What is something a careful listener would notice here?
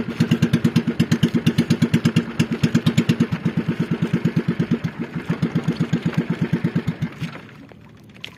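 A small outrigger boat's engine chugs.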